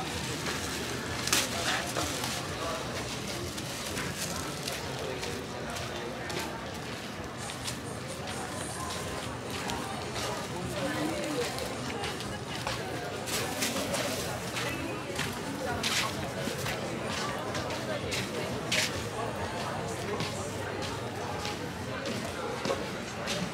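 A crowd of men and women chatters in the background outdoors.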